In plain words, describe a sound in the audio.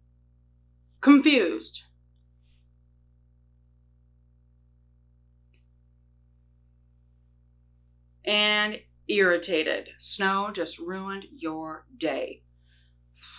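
A young woman speaks expressively and close to a microphone, in short bursts with pauses.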